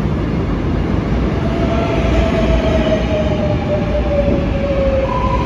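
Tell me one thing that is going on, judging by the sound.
A subway train rumbles loudly into an echoing underground station.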